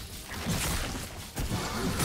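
Fantasy battle sound effects whoosh and crackle as characters fight.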